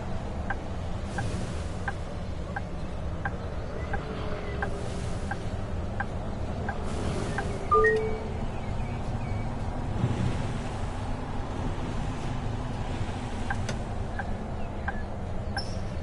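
A bus indicator ticks at an even pace.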